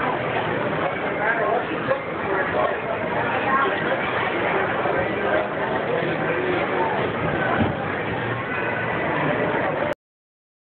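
Many people chatter nearby in a busy crowd.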